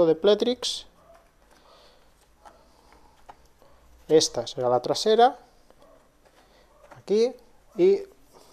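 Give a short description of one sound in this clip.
Stiff cardboard pieces slide and click softly together.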